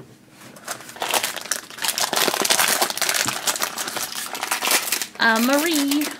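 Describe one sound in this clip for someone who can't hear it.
A foil packet crinkles and rustles as it is torn open.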